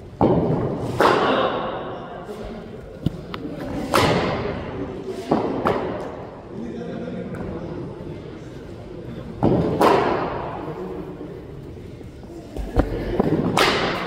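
A cricket bat strikes a ball with a sharp crack that echoes in a large hall.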